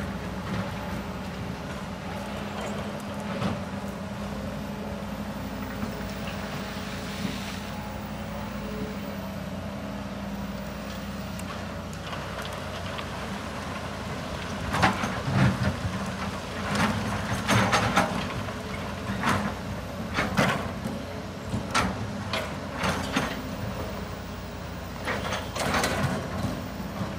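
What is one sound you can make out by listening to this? Excavator engines rumble steadily nearby.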